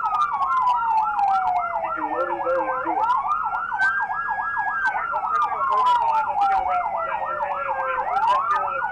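Police sirens wail and yelp loudly close by.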